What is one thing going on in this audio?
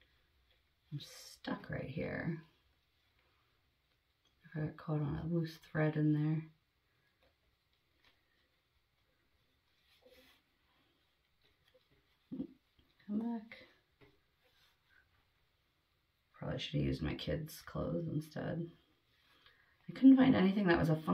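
A young woman speaks calmly and close by, in short bursts with pauses.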